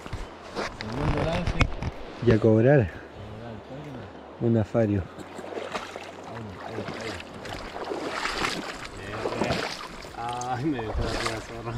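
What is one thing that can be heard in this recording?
Water splashes as a fish is handled.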